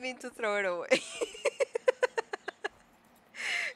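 A young woman laughs loudly into a microphone.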